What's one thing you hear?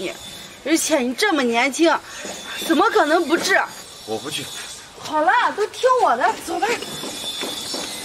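A woman talks emotionally up close.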